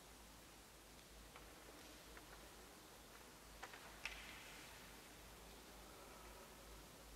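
Sheets of paper rustle as pages are turned.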